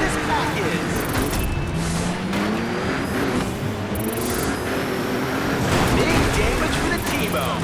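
Metal crunches as cars smash into each other.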